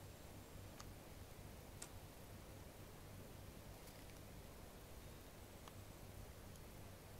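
Wind rumbles softly outdoors.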